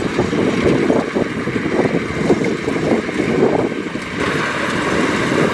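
A combine harvester's engine rumbles steadily close by.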